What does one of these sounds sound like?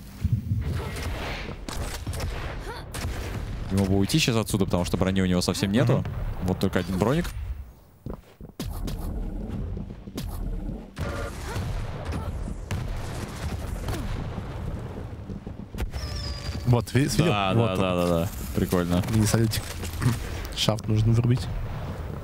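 Weapons fire in rapid bursts with sharp blasts.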